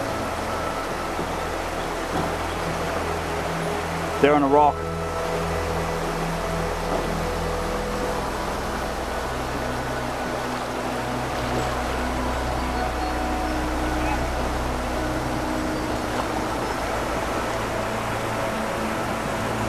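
River water rushes and splashes steadily.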